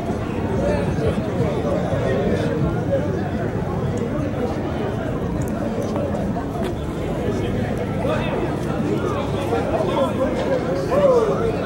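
Race cars roar away down a strip and fade into the distance.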